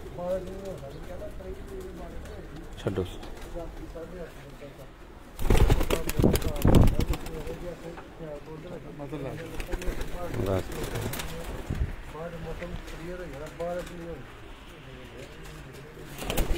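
Pigeons coo softly and repeatedly close by.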